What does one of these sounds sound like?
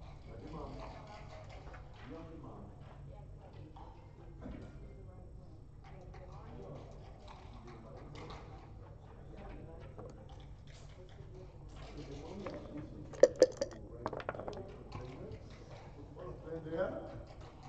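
Game pieces click against a wooden board.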